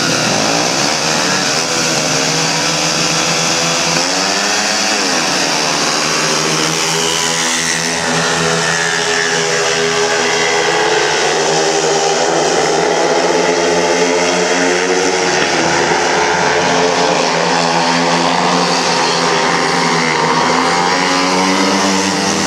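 Several motorcycle engines roar and rev loudly, rising and falling in pitch.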